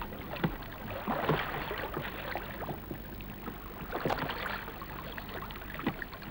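Water swishes and laps against a moving boat's hull.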